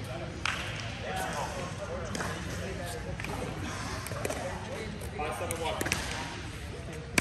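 A young woman speaks calmly and close by, in a large echoing hall.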